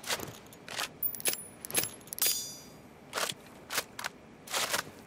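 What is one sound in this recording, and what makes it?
A rifle's metal parts click and rattle as it is handled.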